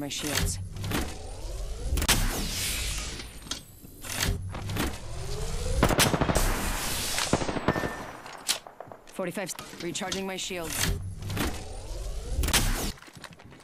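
A shield recharging device whirs and hums in a video game.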